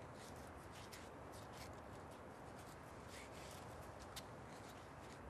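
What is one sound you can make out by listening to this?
Footsteps tap softly on a running track.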